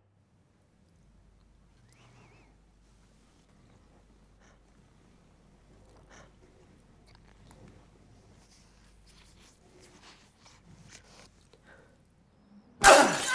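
A young woman breathes shakily and anxiously close by.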